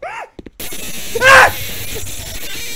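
A young man shouts loudly into a microphone.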